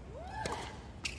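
A tennis racket strikes a ball hard on a serve.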